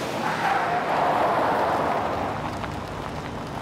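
A car engine hums as a car drives up and stops.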